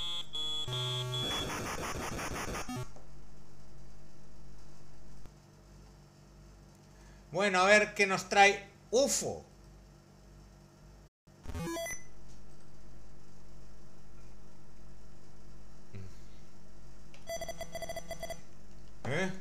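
Retro video game beeps and bleeps play.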